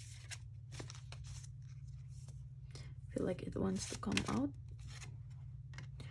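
Playing cards slide and snap softly against each other as they are handled.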